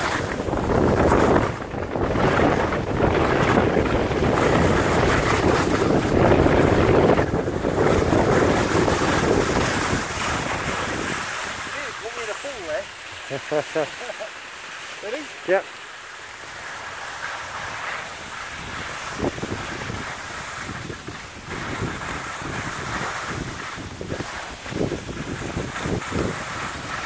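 Skis scrape and hiss over snow.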